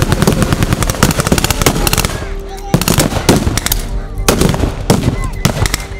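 Loud gunshots boom and echo across open ground.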